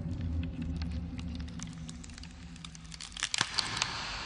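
Hands slap hard against a window pane.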